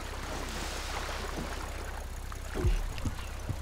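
Water splashes as a man wades through shallow water.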